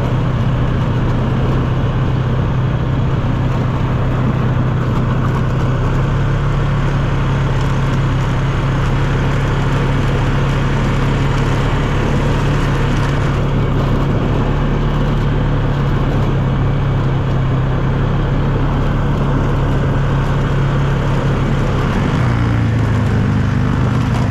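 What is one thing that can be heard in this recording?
Tyres crunch and rumble over rough gravel.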